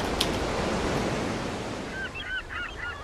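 Waves wash and break on a shore.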